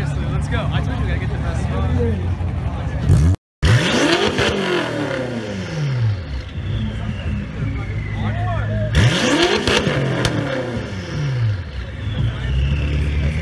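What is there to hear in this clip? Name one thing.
A car engine idles with a deep rumble.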